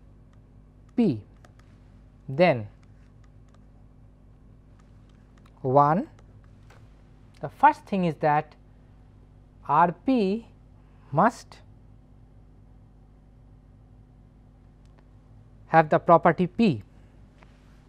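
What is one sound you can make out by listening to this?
A middle-aged man speaks calmly in short phrases, close to a microphone.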